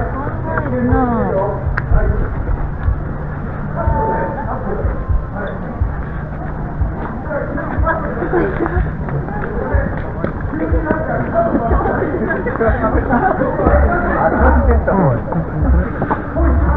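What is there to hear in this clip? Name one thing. A crowd of men and women chatters and talks nearby.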